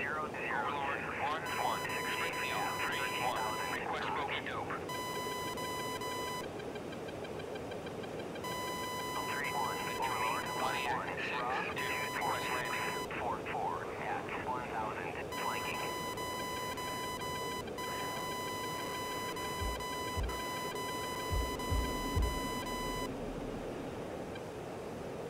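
A jet fighter's engines roar, heard from inside the cockpit.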